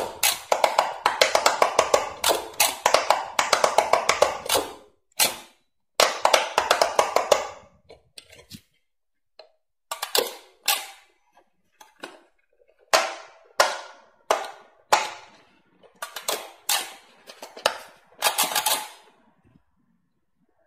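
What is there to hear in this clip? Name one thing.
An electronic handheld toy plays quick bright beeping tones.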